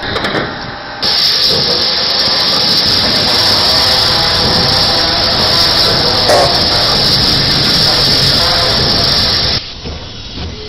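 A steam locomotive hisses loudly and steadily.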